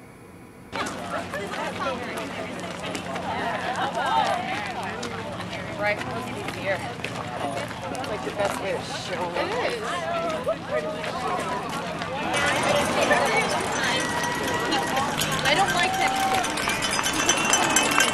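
A crowd of women and men chatter and call out outdoors.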